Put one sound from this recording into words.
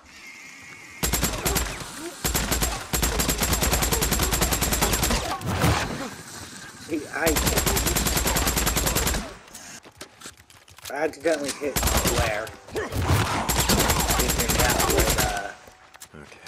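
A submachine gun fires in long rapid bursts.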